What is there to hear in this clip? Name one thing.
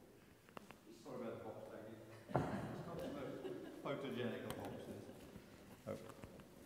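An elderly person speaks calmly into a microphone in a large echoing hall.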